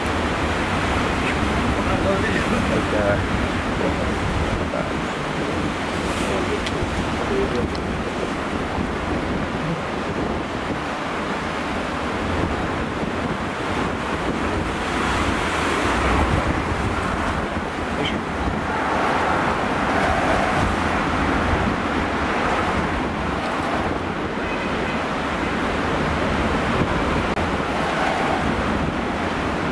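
Large waves crash and roar against rocks.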